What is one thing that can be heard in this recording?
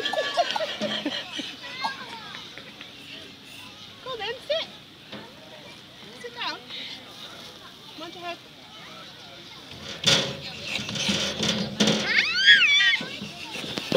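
A woman talks gently to a toddler.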